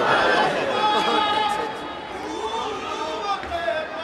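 A young man sings through a loudspeaker.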